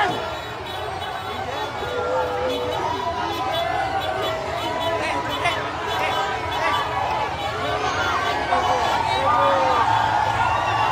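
A large crowd outdoors cheers and shouts loudly.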